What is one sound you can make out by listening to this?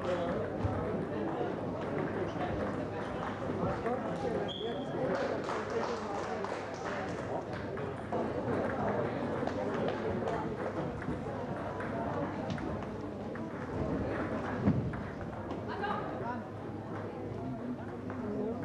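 A crowd of people murmurs in a large echoing hall.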